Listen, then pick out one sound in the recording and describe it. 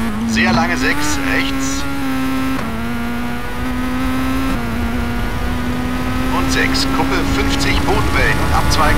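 A rally car engine drones steadily, shifting gears as it speeds up.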